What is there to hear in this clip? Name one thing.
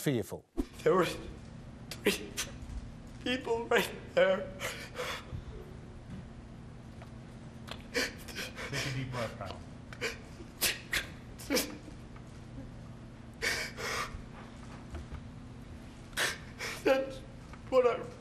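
A young man sobs and gasps through a microphone.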